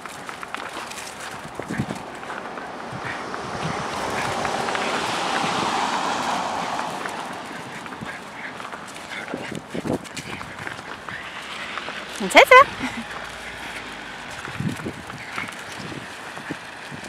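Dogs' paws patter and scuffle on frosty grass.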